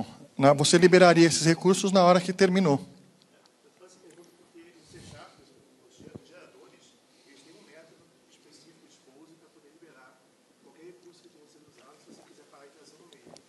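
A man speaks through a microphone and loudspeakers in a large echoing hall.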